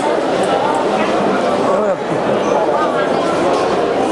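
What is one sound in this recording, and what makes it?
A hand cart rolls across a hard floor.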